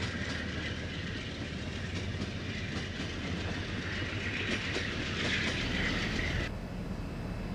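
Passenger rail cars roll past on steel rails with a screeching hiss.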